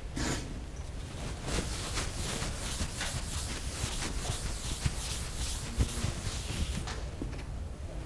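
Chalk scratches and taps on a chalkboard.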